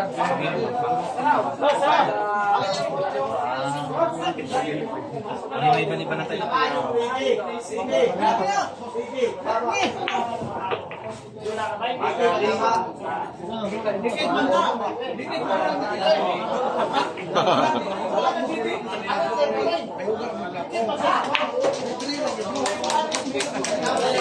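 A crowd of onlookers murmurs and chatters nearby.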